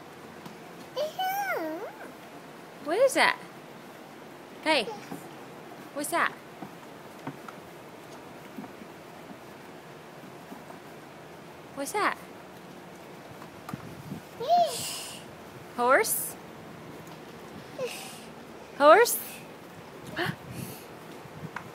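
A toddler babbles and squeals in short bursts close by.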